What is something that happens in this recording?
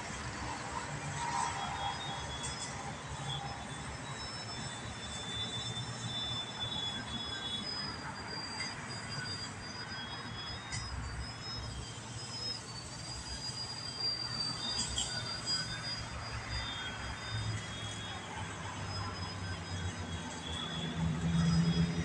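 A model airplane's engine buzzes high overhead, its pitch wavering as it turns.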